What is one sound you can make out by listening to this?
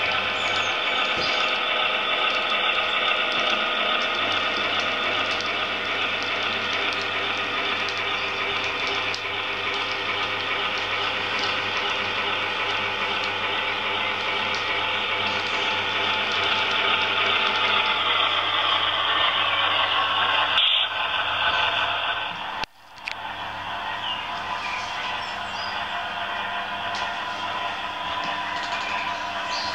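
A model train's motor hums and whirs steadily as the train rolls along its track.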